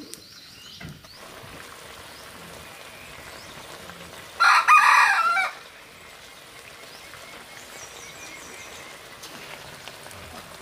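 Liquid bubbles and boils in a pot.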